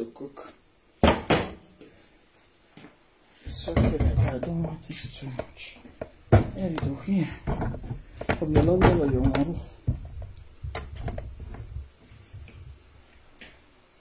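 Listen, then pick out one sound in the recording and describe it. Pot lids and dishes clatter.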